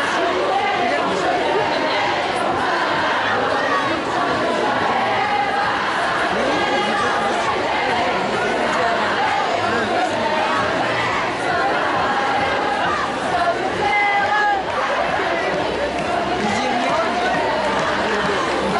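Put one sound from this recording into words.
A large crowd of women chants and shouts loudly outdoors.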